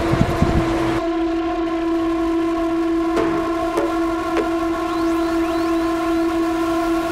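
A small motor vehicle's engine drones steadily while riding.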